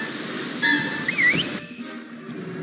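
A magic whoosh sweeps up.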